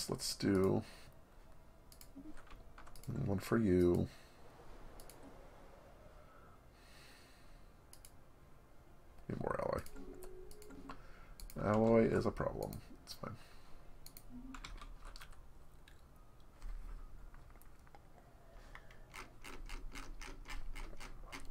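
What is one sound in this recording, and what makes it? Soft interface clicks tick as menus open and close.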